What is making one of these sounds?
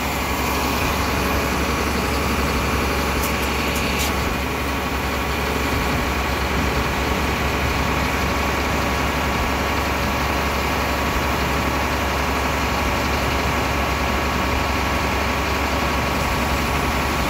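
A hydraulic crane's engine rumbles steadily nearby.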